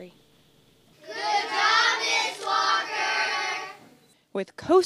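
A group of children cheer and shout together.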